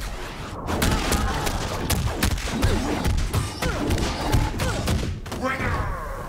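Heavy punches and kicks land in rapid, thudding blows.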